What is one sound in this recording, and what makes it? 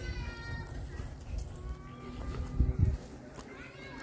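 A dog sniffs at the grass.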